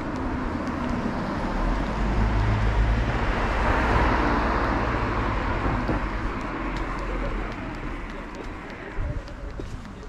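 A car drives past on the road and fades away.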